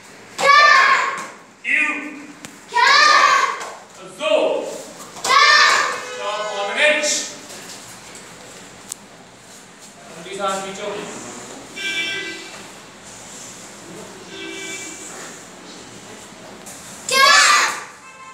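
Children shout together in loud, sharp bursts in an echoing hall.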